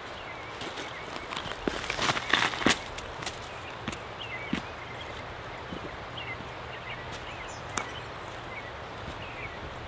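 Footsteps crunch on forest ground.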